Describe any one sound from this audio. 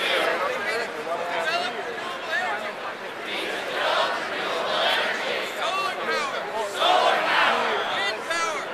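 A man speaks loudly to a crowd outdoors without a microphone.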